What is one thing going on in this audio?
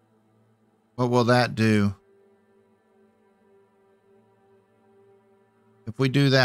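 An elderly man speaks with animation close to a microphone.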